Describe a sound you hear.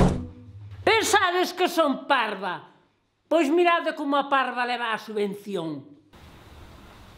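Another elderly woman speaks calmly close by.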